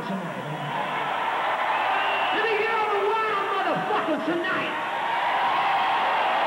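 A large crowd cheers and screams loudly at a concert.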